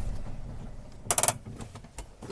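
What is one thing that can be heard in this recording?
A vehicle door shuts with a thud.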